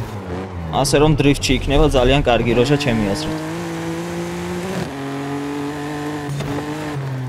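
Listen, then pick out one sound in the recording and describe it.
A car engine roars steadily at high speed, shifting gears.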